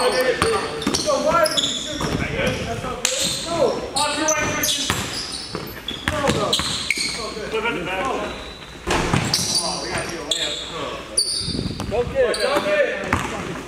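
Young men shout and call out to each other.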